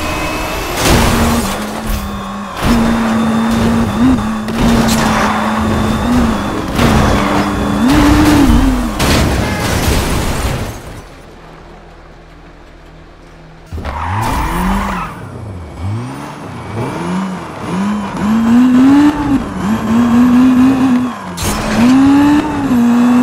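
A race car engine roars loudly, revving up and down.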